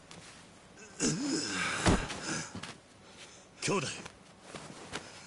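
A young man calls out urgently.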